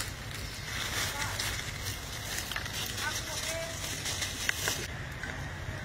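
Dry leaves crunch under a monkey's footsteps.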